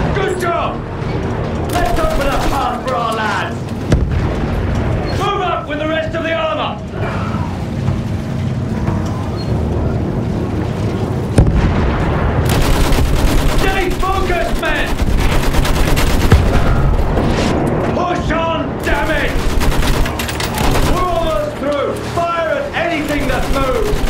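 A rifle fires in single shots.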